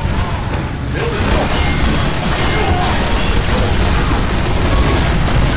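Video game gunfire crackles and bangs rapidly.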